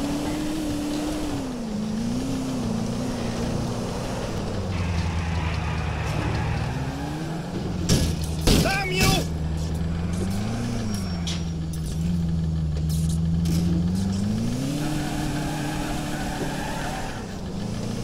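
A car engine hums and revs up and down throughout.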